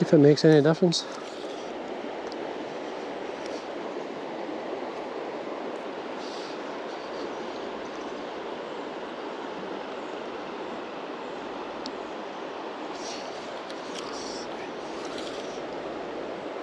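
A river rushes and gurgles steadily outdoors.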